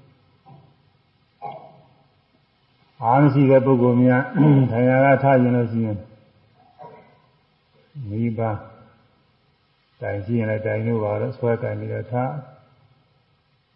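An elderly man chants slowly in a drawn-out voice, close to a microphone.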